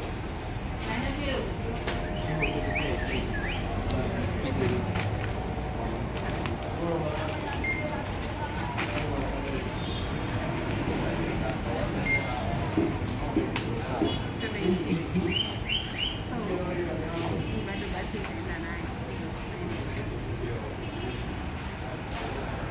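Street traffic and a crowd murmur in the background.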